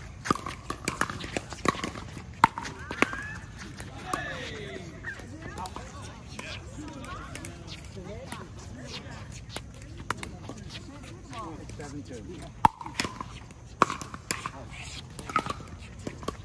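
Paddles pop sharply against a plastic ball outdoors, back and forth.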